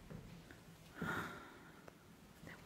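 A woman speaks briefly and softly nearby.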